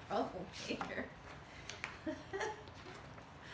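A woman laughs cheerfully close by.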